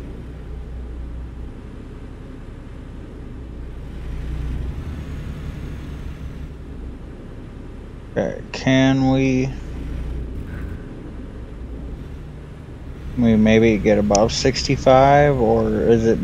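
A truck engine hums steadily while driving on a highway.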